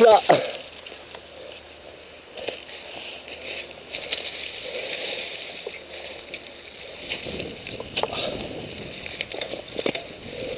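Dry leaves rustle and crunch as a bike is moved about on the ground.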